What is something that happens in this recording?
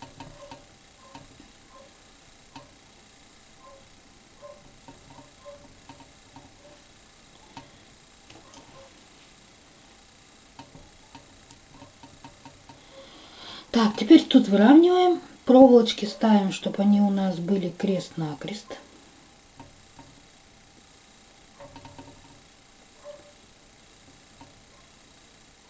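Fingers rub and twist a strip of craft foam around a wire.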